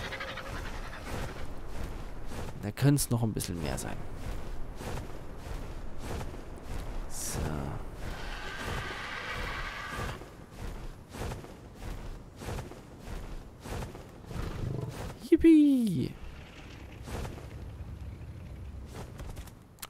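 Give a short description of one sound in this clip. Large wings flap with heavy, repeated whooshes.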